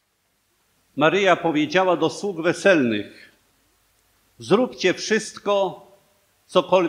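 A middle-aged man speaks calmly and solemnly through a microphone, with pauses.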